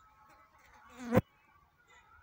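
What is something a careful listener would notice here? A bulb snaps sharply into a holder.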